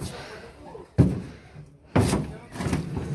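A wooden crate thuds down onto a truck bed.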